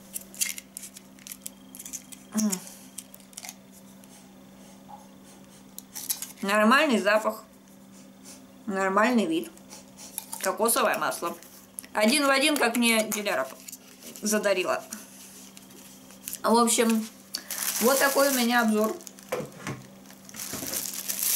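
A plastic bottle crinkles and clicks in someone's hands.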